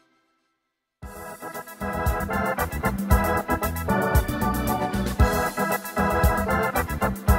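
An electronic keyboard plays a lively tune with drums and bass.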